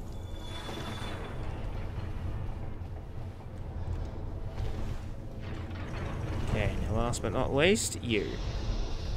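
Armoured footsteps clank on stone in an echoing passage.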